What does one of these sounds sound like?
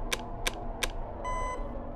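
Keypad buttons click.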